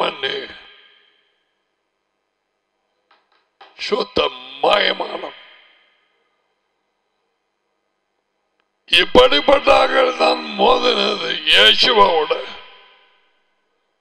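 An elderly man speaks with animation into a close microphone.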